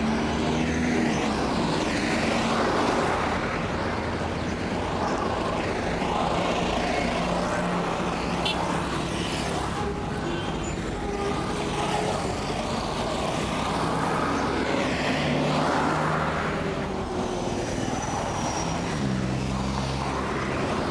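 Cars and trucks rush past on a busy road nearby.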